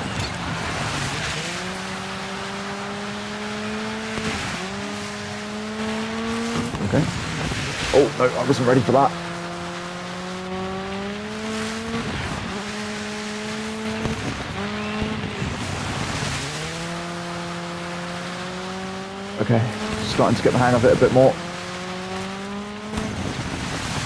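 Tyres skid and spray through water on a track.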